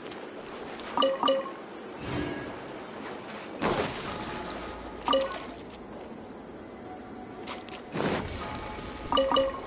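A bright chime rings as items are picked up.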